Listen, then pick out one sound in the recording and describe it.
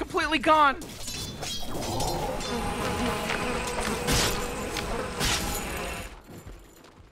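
Battle sound effects clash and crackle as fighters cast spells.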